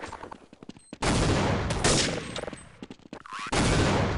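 A grenade explodes with a loud roaring blast.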